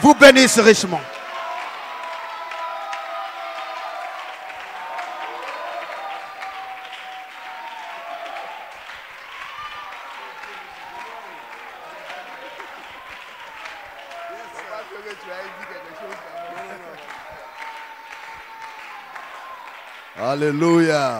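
A crowd of people murmur and pray aloud.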